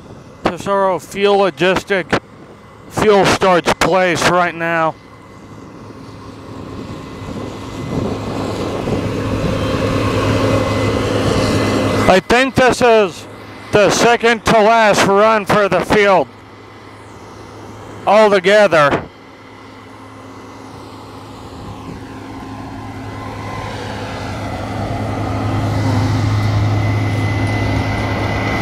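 A combine harvester's engine hums steadily nearby.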